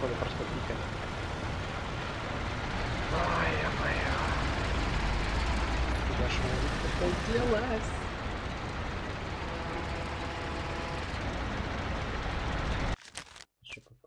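A car engine drones steadily, then cuts off abruptly.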